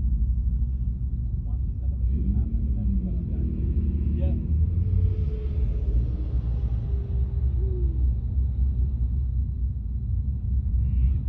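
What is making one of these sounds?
Wind buffets the microphone outdoors with a low, steady rumble.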